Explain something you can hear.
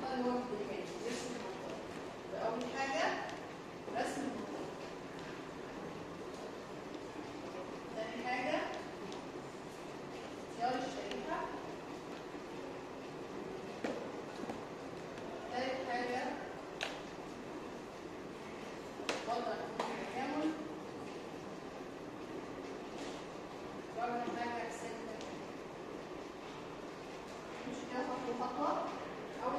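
A woman speaks in short bursts, explaining calmly in an echoing room.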